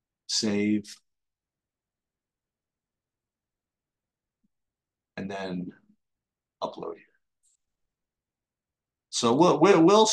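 A man speaks calmly into a close microphone, in short bursts with pauses.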